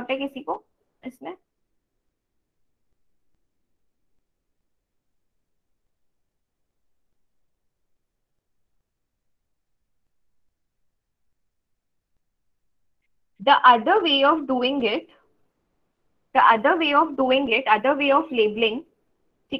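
A young woman speaks calmly through a computer microphone, in pauses.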